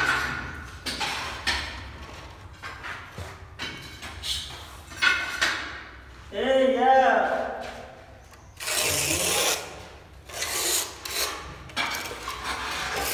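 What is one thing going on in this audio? A hand rubs and smooths wet plaster against a wall in repeated scraping strokes.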